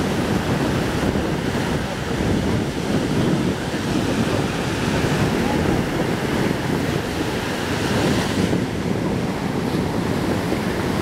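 Ocean waves crash and wash up onto the shore.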